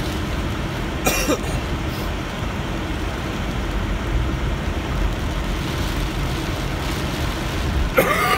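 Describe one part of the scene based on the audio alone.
A car drives along a wet road, tyres hissing on slush.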